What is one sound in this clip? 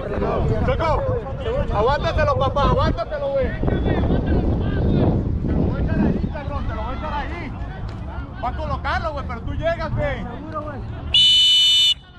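Men shout to one another across an open field.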